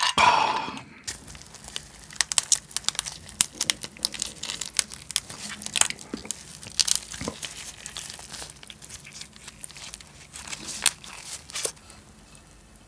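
Gloved hands squish and crack a soft crab shell close to a microphone.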